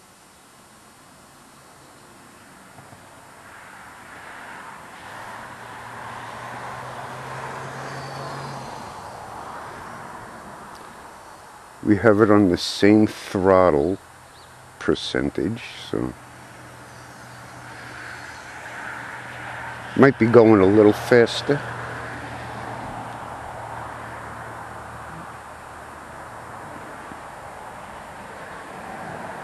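Wind rushes past a small plane in flight.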